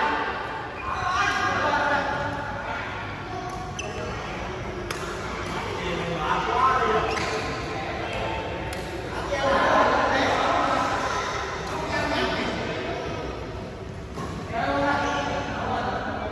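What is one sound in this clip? Young men talk and call out in an echoing hall.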